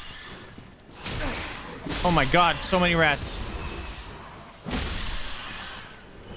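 Swords clash and strike in combat.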